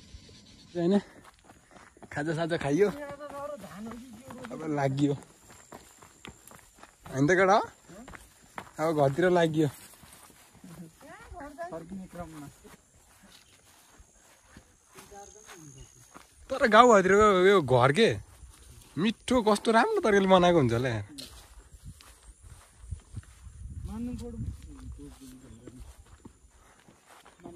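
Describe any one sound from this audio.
Footsteps swish through tall grass on a path.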